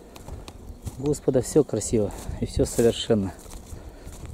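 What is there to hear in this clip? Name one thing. A man speaks loudly from a short distance outdoors.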